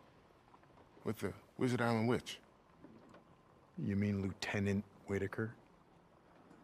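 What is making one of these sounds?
A second man answers in a low, gruff voice.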